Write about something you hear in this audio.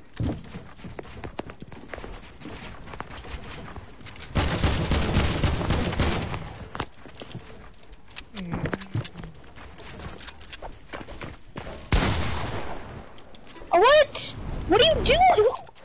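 Building pieces snap into place with rapid clattering knocks.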